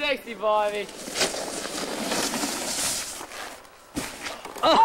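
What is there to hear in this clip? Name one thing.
A person crashes heavily into deep snow.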